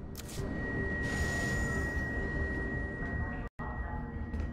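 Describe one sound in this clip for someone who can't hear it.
A metal door slides open with a whirring hiss.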